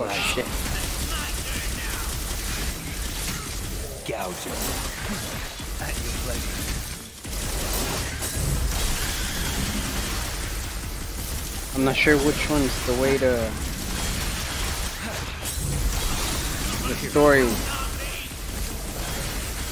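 Sword slashes and magic blasts clash in a fast fight.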